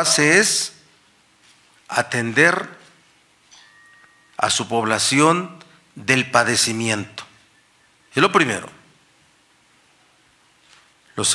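A middle-aged man speaks calmly and firmly into a microphone, in short phrases with pauses.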